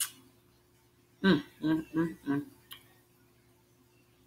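A woman chews food with soft mouth sounds.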